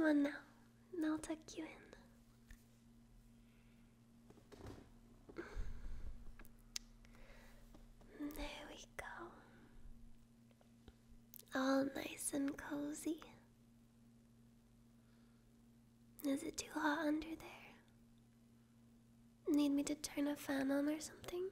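A young woman speaks softly and intimately, close to a microphone.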